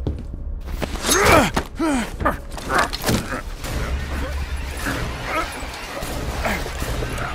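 A man grunts and speaks roughly, close by.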